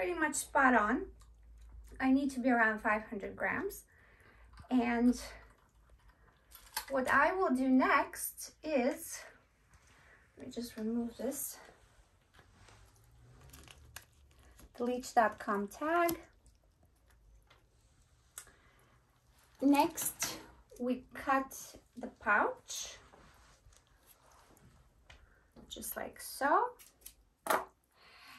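A woman talks calmly and cheerfully close by, in short phrases with pauses.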